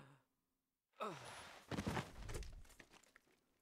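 A metal helmet clatters onto the ground.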